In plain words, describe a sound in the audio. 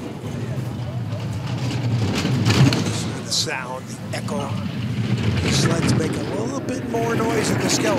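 A bobsled scrapes and rumbles loudly along an ice track.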